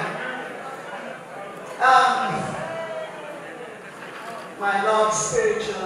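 A woman speaks with animation into a microphone, heard through a loudspeaker in a reverberant hall.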